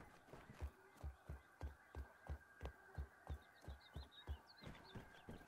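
Footsteps thud on wooden stairs in a steady rhythm.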